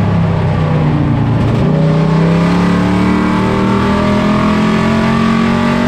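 A race car engine roars loudly from inside the cab, its pitch rising as it accelerates.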